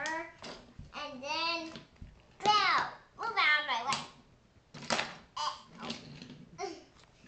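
A toy train rolls and clatters along a wooden track.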